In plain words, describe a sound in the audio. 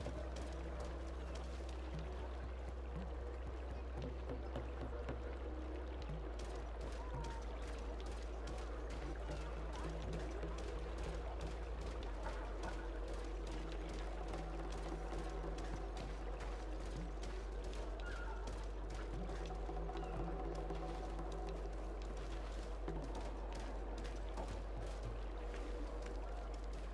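Soft footsteps patter quickly on stone.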